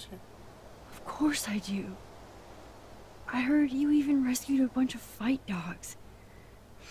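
A young woman speaks with enthusiasm.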